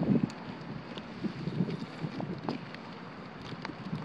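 A dog's paws patter on stone paving.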